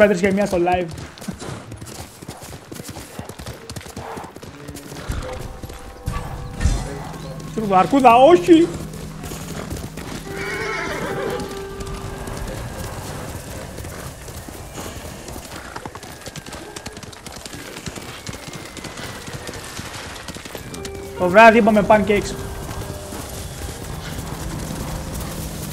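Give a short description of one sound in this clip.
A horse's hooves gallop over the ground.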